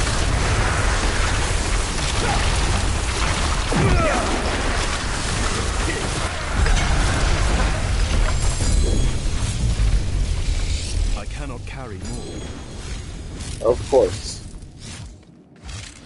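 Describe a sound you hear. Electric bolts zap and crackle.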